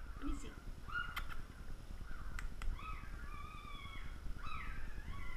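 Newborn puppies squeak and whine close by.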